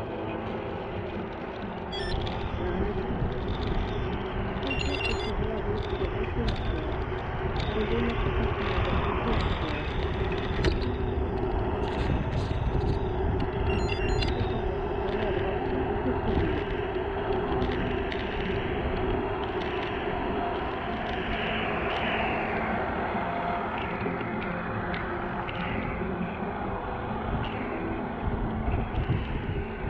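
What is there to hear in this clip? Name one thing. Bicycle tyres hiss on a wet road.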